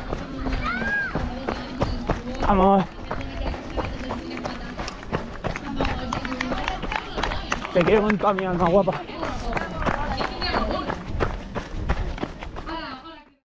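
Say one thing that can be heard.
Running footsteps crunch on gravel at a steady pace.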